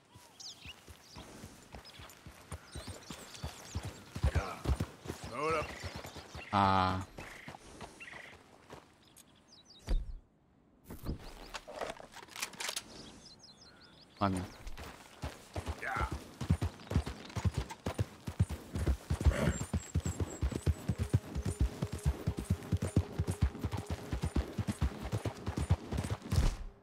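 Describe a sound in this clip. A horse's hooves thud steadily on a dirt trail, speeding up to a quick gallop.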